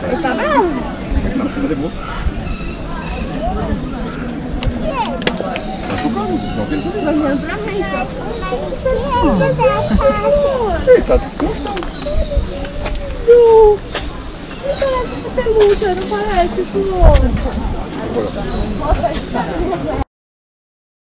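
Adult men and women chat casually nearby.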